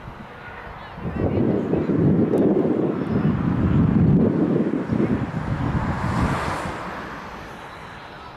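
Wind blusters into the microphone outdoors.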